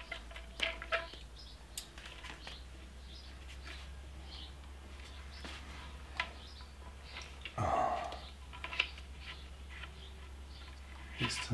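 Small metal parts click and clink in a man's hands.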